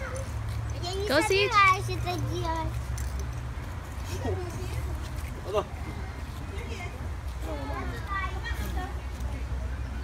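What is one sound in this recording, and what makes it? A small child squeals and babbles excitedly.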